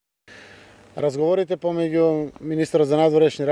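A man speaks outdoors into microphones with animation.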